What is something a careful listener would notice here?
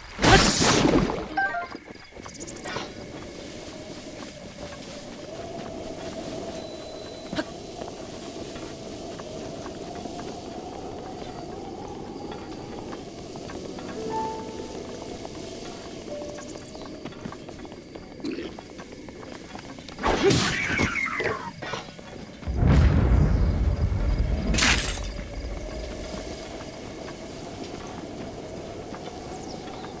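Game music plays softly and steadily.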